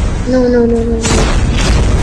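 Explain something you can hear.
A grappling line zips through the air.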